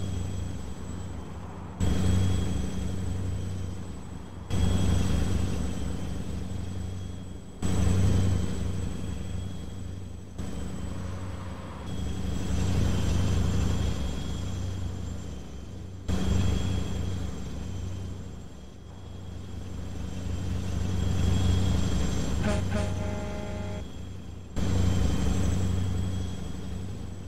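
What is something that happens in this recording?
Tyres roll over the road with a steady hum.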